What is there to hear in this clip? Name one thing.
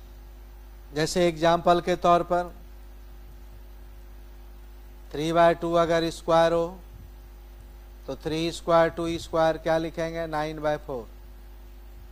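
A middle-aged man speaks calmly and slowly into a close microphone, in short phrases with pauses.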